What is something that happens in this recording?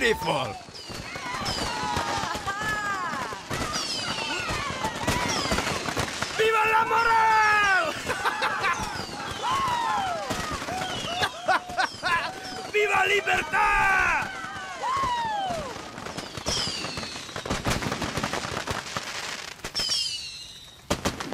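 Fireworks whistle as they rise.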